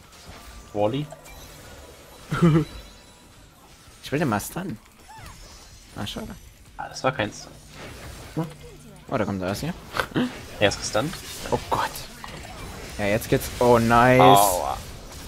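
Video game spell effects whoosh and crackle in short bursts.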